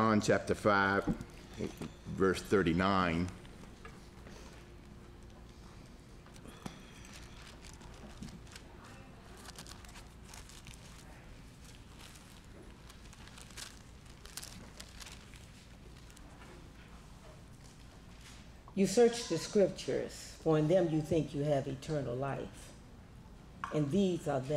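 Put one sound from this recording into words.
A middle-aged man speaks calmly into a handheld microphone, with pauses.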